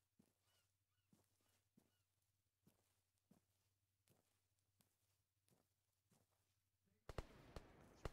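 Footsteps tread softly through grass.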